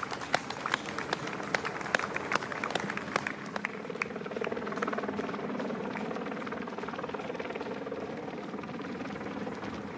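A motorbike engine hums nearby.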